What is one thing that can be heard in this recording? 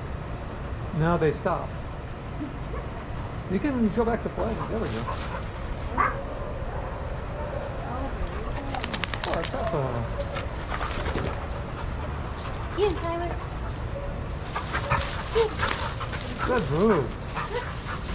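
Dogs growl and whine playfully up close.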